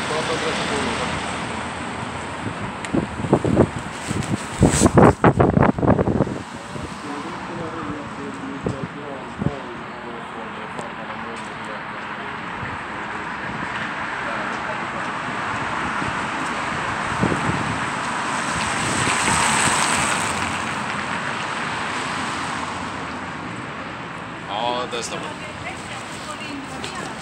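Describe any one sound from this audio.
A man speaks nearby in a firm, calm voice.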